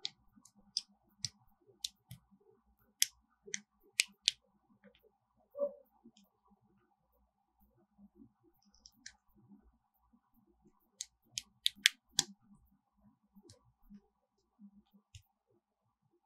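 Small plastic parts click and snap together.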